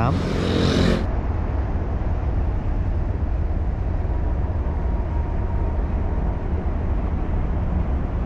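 Motorbike engines hum and rumble in dense traffic.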